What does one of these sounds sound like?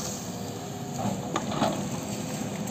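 Metal and wood clank and knock as an excavator works.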